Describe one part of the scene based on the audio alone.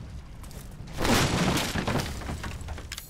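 Wooden planks crash and splinter.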